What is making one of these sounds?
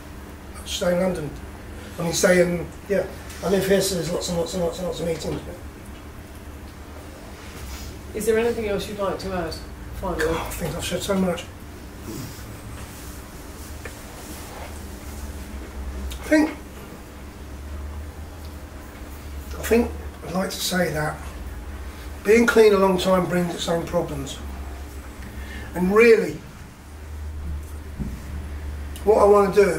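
An older man speaks with animation close to a microphone, in bursts and pauses.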